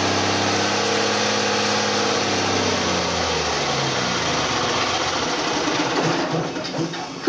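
A diesel engine runs, then slows and shuts down.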